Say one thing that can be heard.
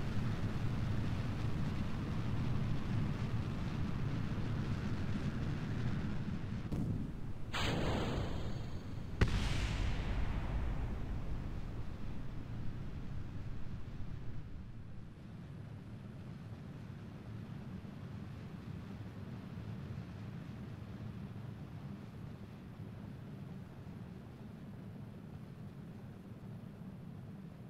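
A rocket engine roars steadily with a deep rumble, growing quieter partway through.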